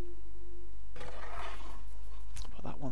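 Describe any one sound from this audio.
A heavy stone block scrapes across a hard floor.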